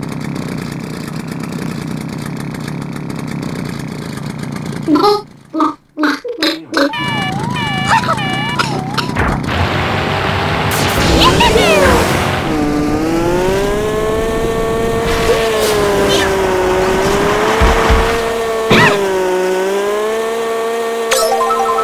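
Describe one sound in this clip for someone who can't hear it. A kart engine hums steadily.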